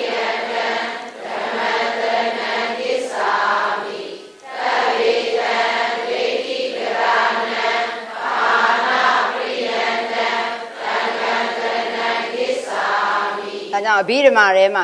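A middle-aged woman chants in a steady drone through a microphone.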